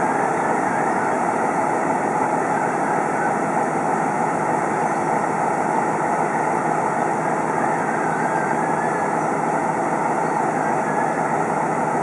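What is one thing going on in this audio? A diesel locomotive idles.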